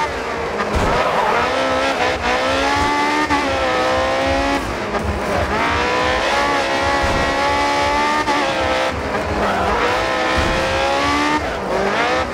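A racing car engine screams at high revs, rising in pitch and dropping sharply with each gear change.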